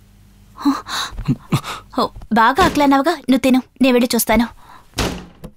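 A young woman speaks sharply and angrily, close by.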